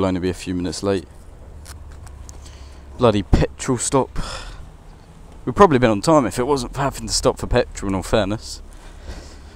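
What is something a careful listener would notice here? A man talks close to a helmet microphone.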